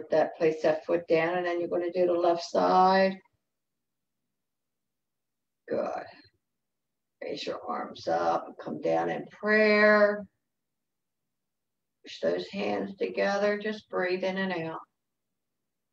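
An elderly woman speaks calmly and instructively over an online call, with pauses.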